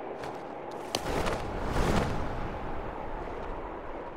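Wind rushes loudly past, swelling and fading.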